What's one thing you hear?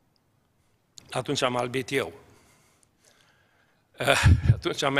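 An elderly man preaches with emphasis through a microphone.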